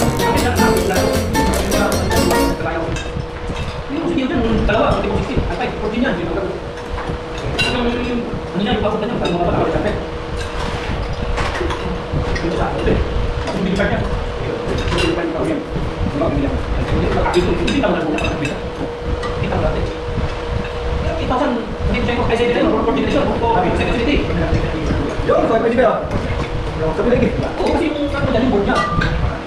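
Cutlery and dishes clink on plates.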